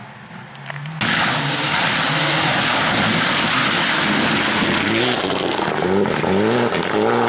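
A rally car engine roars and revs hard as the car speeds close by.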